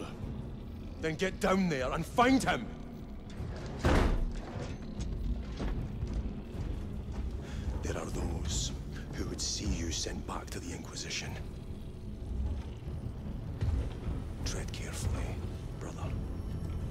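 A man speaks in a deep, gruff voice.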